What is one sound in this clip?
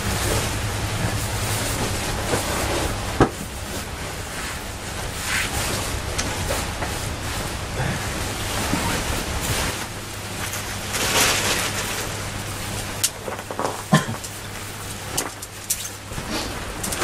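Nylon fabric rustles.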